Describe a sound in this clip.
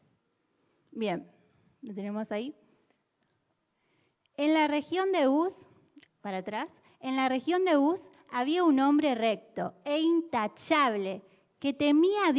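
A young woman sings through a microphone and loudspeakers.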